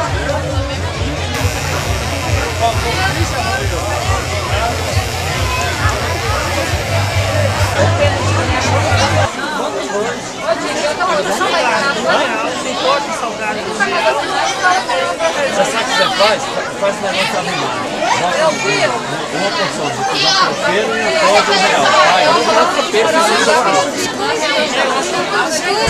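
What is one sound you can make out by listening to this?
A large crowd of men and women chatters all around.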